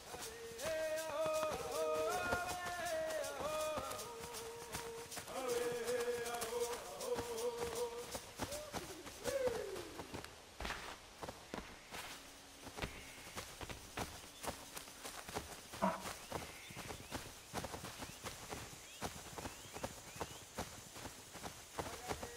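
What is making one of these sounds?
Quick footsteps run through grass and leaves.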